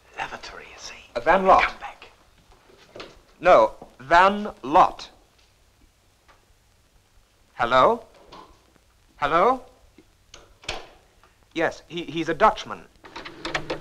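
A man speaks tersely and quickly, close by.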